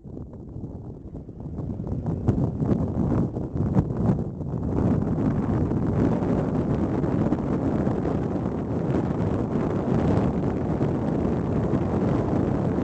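Tyres rumble steadily on a paved road.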